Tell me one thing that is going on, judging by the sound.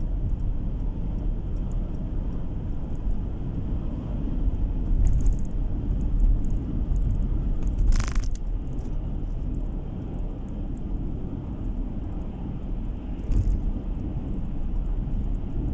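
Tyres roll with a low, steady rumble on the road.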